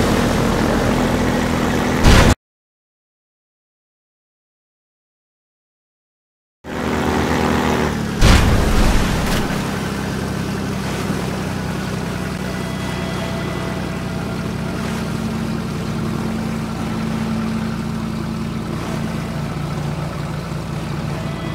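A boat engine drones steadily at close range.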